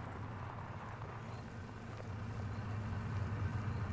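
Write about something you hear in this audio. A pickup truck's engine rumbles as it rolls closer.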